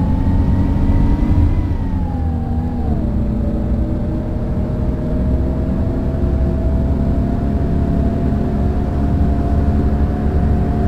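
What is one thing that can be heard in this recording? A bus engine hums steadily as it drives.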